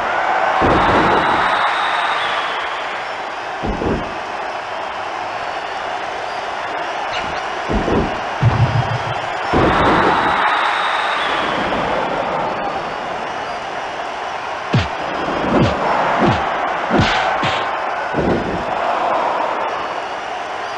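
A large crowd cheers and roars steadily.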